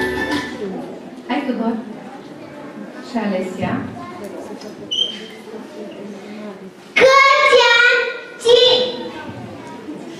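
A young boy recites loudly into a microphone.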